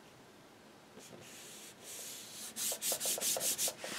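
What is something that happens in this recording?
Stiff paper rustles and scrapes as it is handled.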